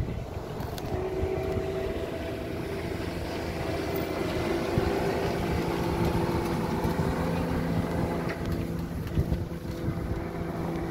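A motorboat engine drones as the boat speeds past across the water.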